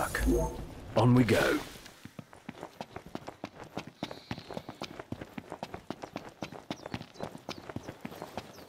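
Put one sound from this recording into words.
Footsteps run quickly over dry grass and dirt.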